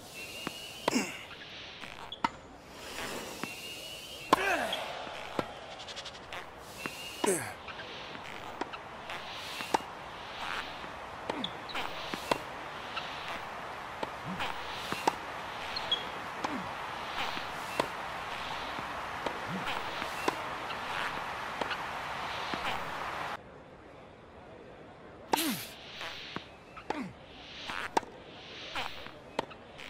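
A tennis ball is struck sharply back and forth.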